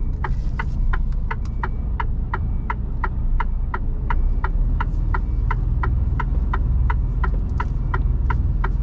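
A turn signal ticks at a quick, even pace.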